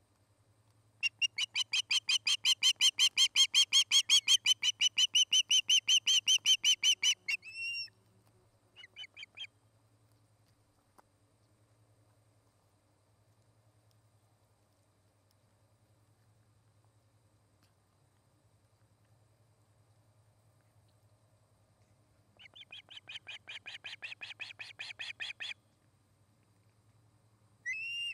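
An osprey gives rapid, shrill, piercing calls close by.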